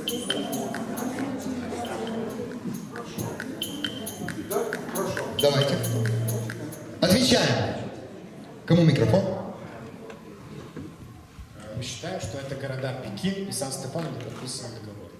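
Many people murmur and chatter in the background.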